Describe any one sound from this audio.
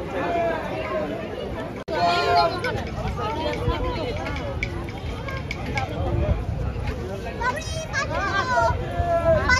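A crowd of men and women chatter nearby outdoors.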